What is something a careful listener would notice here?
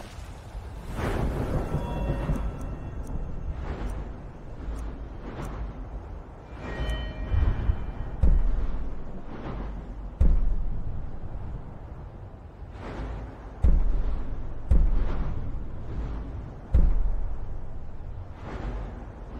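Deep whooshing swells sound as game menus slide and change.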